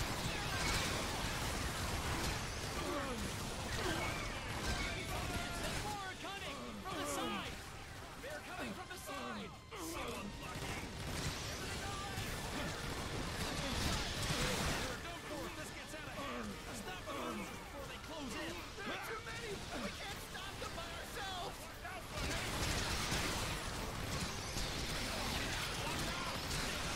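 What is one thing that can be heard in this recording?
Laser weapons fire in rapid bursts.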